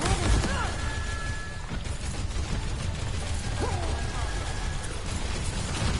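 Video game energy beams hum and whine.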